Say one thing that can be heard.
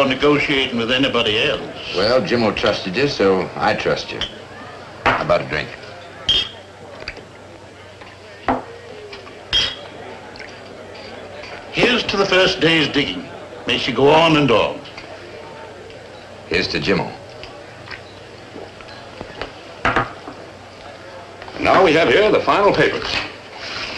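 Middle-aged men talk calmly across a table.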